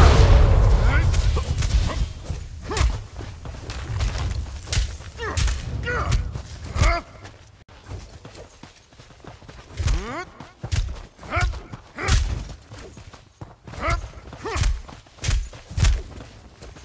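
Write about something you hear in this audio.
Creatures shriek in rising cries.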